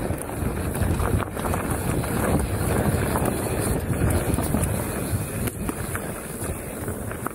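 Bicycle tyres rumble over a bumpy dirt trail.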